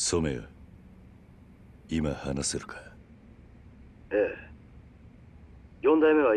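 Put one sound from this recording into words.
A man speaks calmly and in a low voice, close by.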